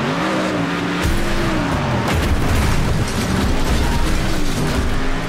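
Car bodies crash and scrape together with metallic bangs.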